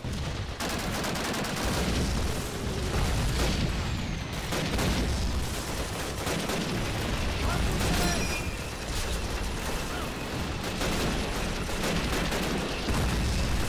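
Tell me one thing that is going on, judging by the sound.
Explosions boom heavily nearby.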